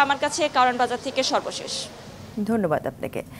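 A young woman speaks steadily into a microphone.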